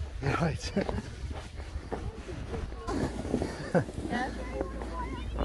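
Children shout and laugh excitedly outdoors.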